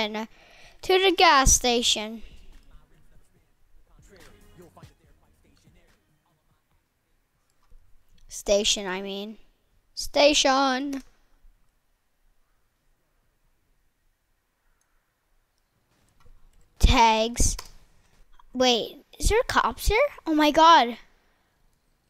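A young boy talks with animation into a headset microphone, in short bursts.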